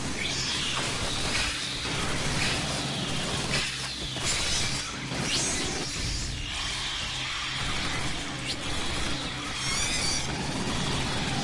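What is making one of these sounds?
Automatic rifle fire crackles.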